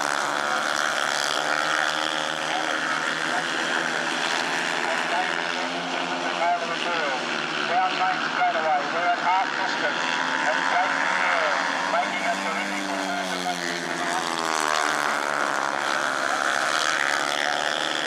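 Motorcycle engines roar loudly, rising and falling as the bikes race around a track.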